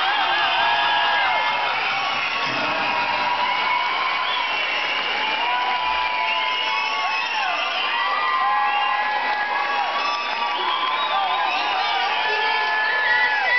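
A large crowd of young people cheers and shouts in a big echoing hall.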